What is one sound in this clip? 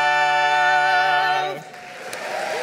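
A group of men sing together in close harmony, then stop.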